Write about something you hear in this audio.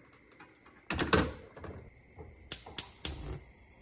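A gas stove igniter clicks rapidly.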